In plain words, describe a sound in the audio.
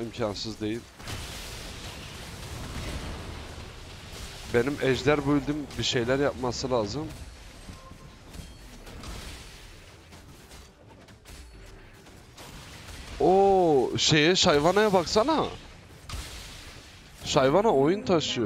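Game battle sound effects of magic blasts and clashing weapons ring out.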